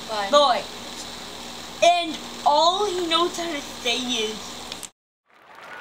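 A young boy speaks in a high, animated voice close by.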